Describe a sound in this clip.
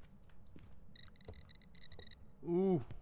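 An electronic meter beeps in quick pulses.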